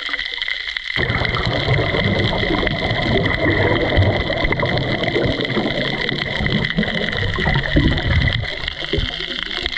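A diver's exhaled bubbles gurgle and rumble close by underwater.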